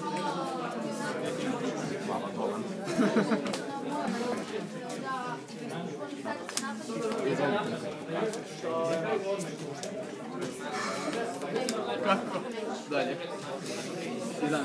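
Young men talk casually close by.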